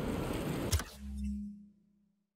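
A soft electronic tone sounds briefly.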